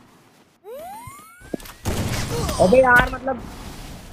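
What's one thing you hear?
A rifle shot cracks.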